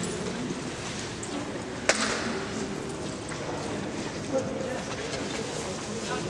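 People murmur quietly in an echoing stone hall.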